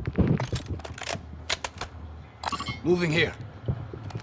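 A gun's metal parts click and rattle as it is handled.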